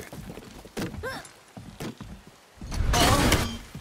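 Heavy footsteps thud on a wooden bridge.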